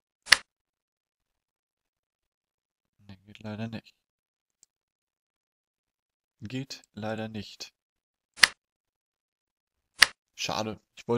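A short sharp click sounds a few times.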